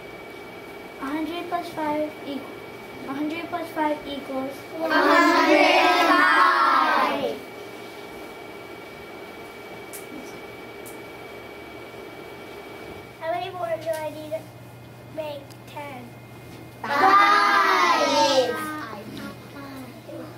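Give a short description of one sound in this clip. A young boy speaks with animation close by.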